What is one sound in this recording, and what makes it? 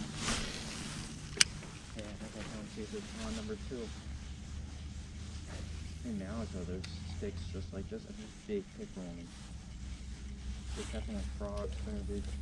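A fishing reel whirs as its handle is cranked.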